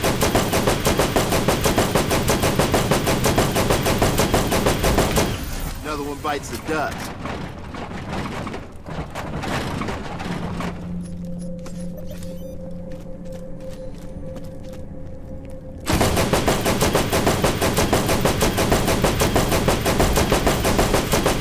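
A machine gun fires in rapid, steady bursts.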